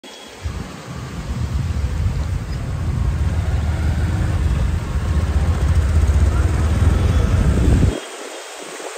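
A car engine rumbles low while driving.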